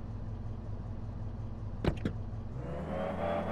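A sports car engine idles with a low rumble.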